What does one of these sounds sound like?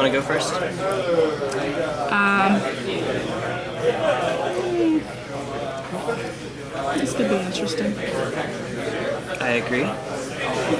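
Playing cards rustle and slap softly as they are shuffled by hand.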